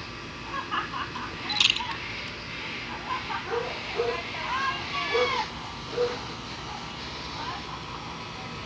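A group of women and children cheer and call out outdoors at a distance.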